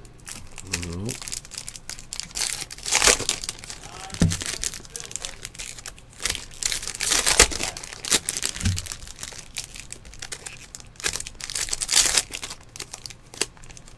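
Plastic wrappers crinkle and rustle as packs are torn open.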